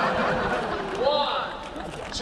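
A young woman screams with joy close by.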